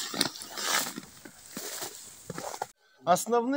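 Dry hay rustles softly under a man's hand.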